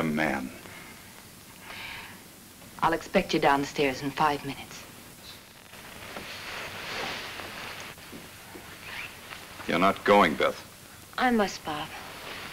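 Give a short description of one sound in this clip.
A young man speaks in a low, earnest voice up close.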